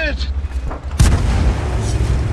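A tank cannon fires with a sharp boom.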